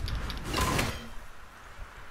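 An axe strikes hard with a sharp crack.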